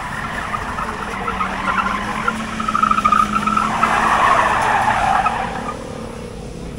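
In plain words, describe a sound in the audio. A car engine revs nearby.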